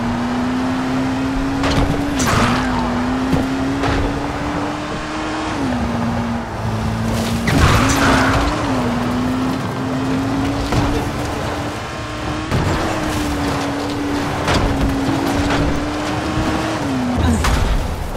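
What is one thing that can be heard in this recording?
A car engine hums steadily, shifting pitch as the driver changes speed.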